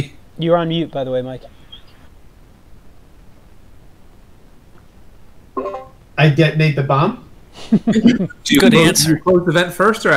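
Men talk with animation over an online call.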